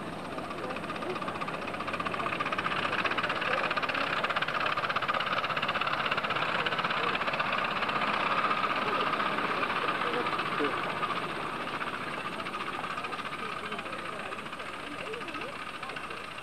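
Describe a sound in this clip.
Small steam locomotive wheels rattle along the rails.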